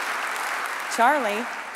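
A young woman speaks into a microphone in a large hall.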